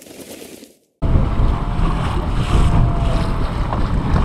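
Choppy lake water splashes against a boat hull.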